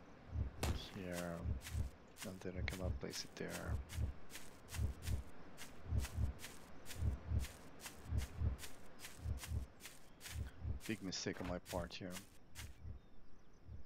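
Footsteps thud quickly on the ground in a steady running rhythm.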